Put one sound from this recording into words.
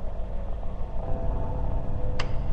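Electronic static crackles and hisses.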